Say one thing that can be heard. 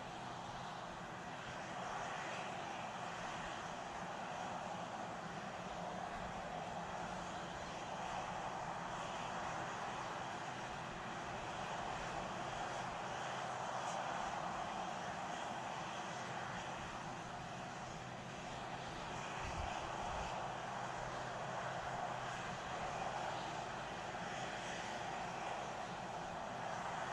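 Gas vents from a rocket with a steady, rushing hiss.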